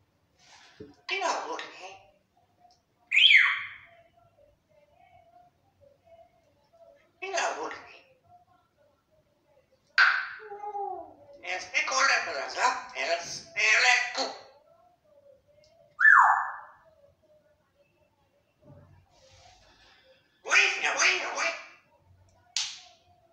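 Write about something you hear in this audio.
A parrot chatters and mimics speech in bursts, close by.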